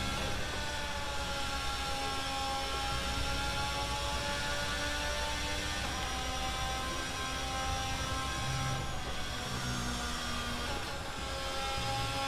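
A racing car engine screams at high revs, shifting gears up and down.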